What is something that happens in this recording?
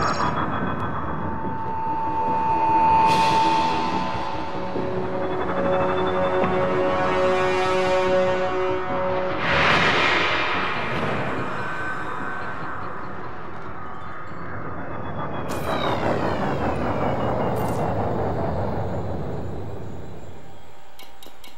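A spaceship engine hums and whooshes in low rumbling surges.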